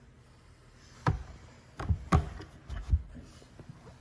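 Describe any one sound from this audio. A hatch lid thumps shut.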